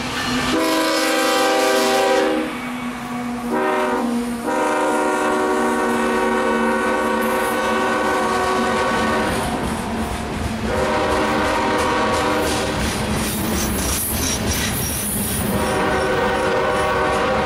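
A freight train's horn blares loudly close by, in long repeated blasts.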